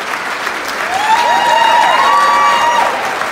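An orchestra begins to play.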